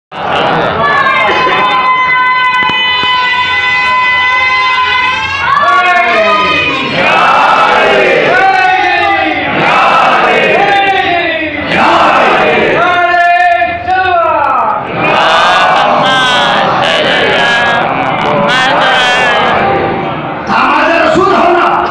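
A man chants loudly and with feeling through a microphone and loudspeakers.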